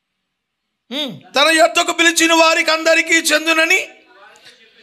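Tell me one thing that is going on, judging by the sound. An elderly man sings out loudly into a microphone.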